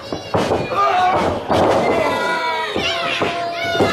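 A wrestler's body slams onto the ring mat with a heavy thud.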